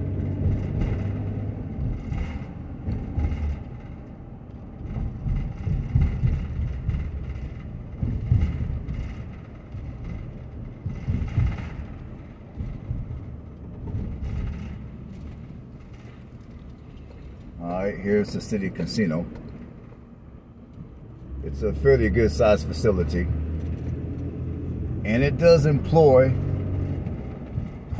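A car engine hums and tyres rumble on pavement while driving.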